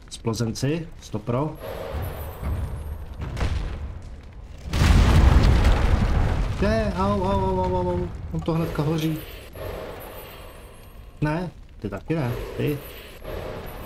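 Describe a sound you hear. A young man speaks animatedly, close to a microphone.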